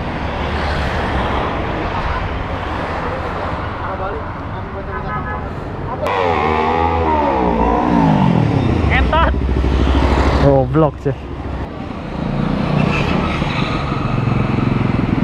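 Motorcycle engines rumble and pass by on a street outdoors.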